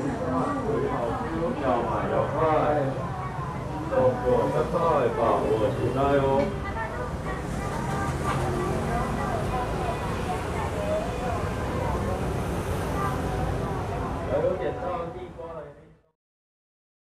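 A crowd of people chatters.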